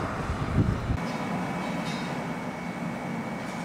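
Electric fans hum steadily in a large workshop.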